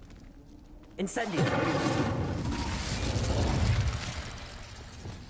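A fiery blast bursts with a loud roar and crackles away.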